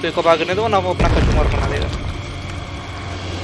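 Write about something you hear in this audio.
A heavy rumbling crash booms and fades.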